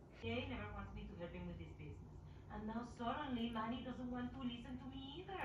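A woman speaks with animation through a television loudspeaker.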